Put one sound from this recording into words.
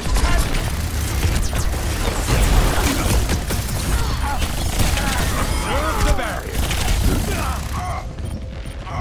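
Gunfire and explosions crackle in a fast battle.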